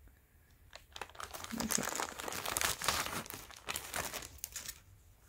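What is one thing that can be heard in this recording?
A plastic bag crinkles as hands handle it.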